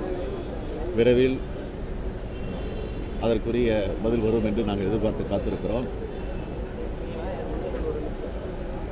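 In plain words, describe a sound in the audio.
A middle-aged man speaks firmly into microphones close by.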